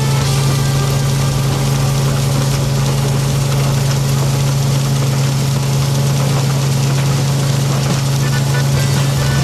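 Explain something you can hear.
A threshing machine drones and rattles steadily nearby.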